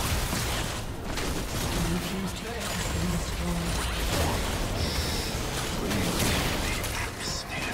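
Magic blasts and spell effects crackle and burst in a fast video game battle.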